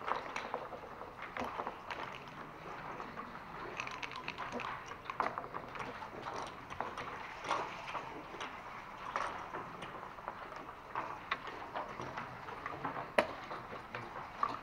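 Backgammon checkers click and clack as they are moved on a wooden board.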